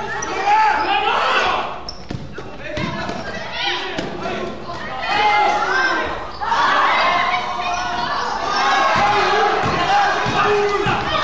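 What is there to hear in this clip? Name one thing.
Sneakers squeak sharply on a gym floor in a large echoing hall.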